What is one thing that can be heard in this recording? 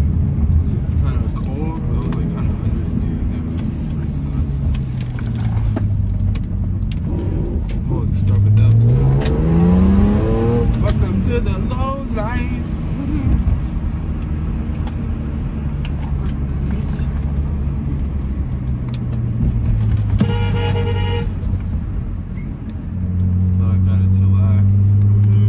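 A car engine drones steadily from inside the car, revving up and down as it drives.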